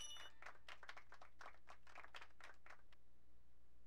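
Short electronic blips chirp rapidly from a video game.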